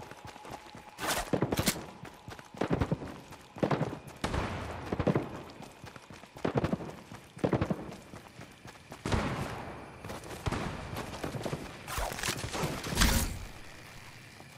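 Footsteps rustle quickly through dry grass.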